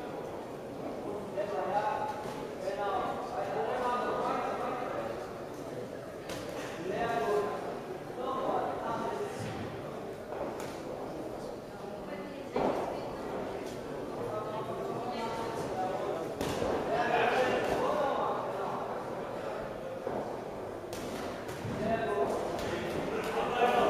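Spectators shout and call out in an echoing hall.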